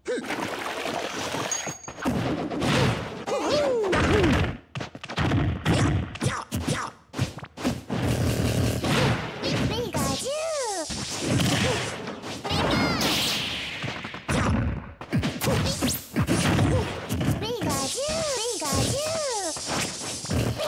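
Punches and kicks land with sharp cracks in a fast-paced video game fight.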